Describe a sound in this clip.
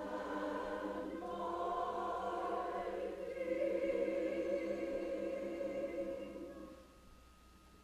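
A choir sings together in a large echoing hall, then the singing fades away.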